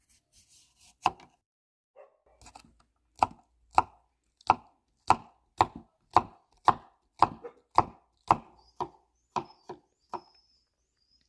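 A knife chops through cucumber onto a wooden board in steady, crisp knocks.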